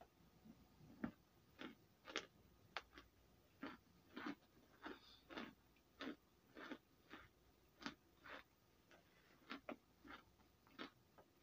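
A woman bites and crunches chalky chunks close by.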